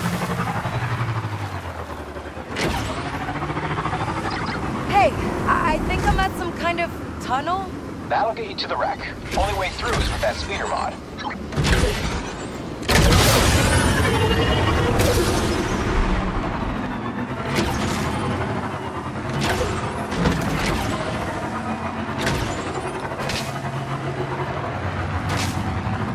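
A hover bike engine hums steadily as it speeds along.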